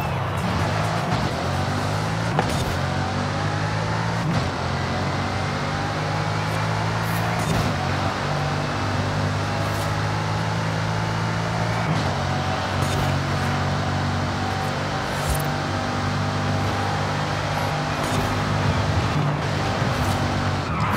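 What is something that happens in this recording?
A powerful sports car engine roars at high speed, shifting up through the gears.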